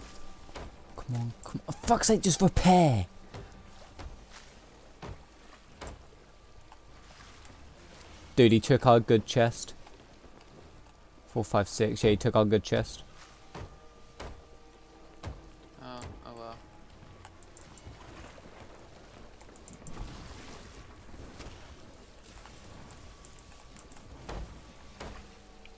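Water sprays and hisses through holes in a wooden hull.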